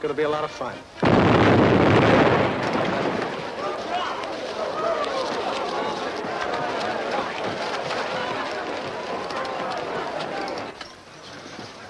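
A large crowd chatters and murmurs.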